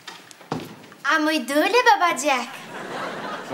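A young woman speaks brightly.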